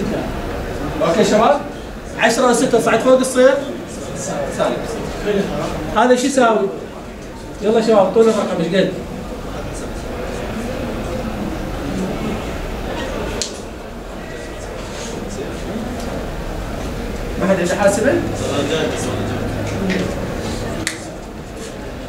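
A man lectures calmly and clearly, close by in a room.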